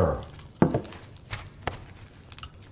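Glassware clinks softly.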